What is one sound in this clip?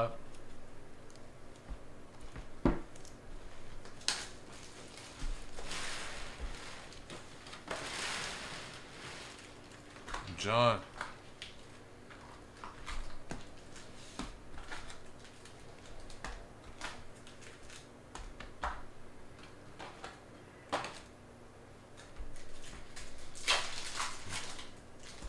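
Trading cards rustle and click as hands flip through a stack.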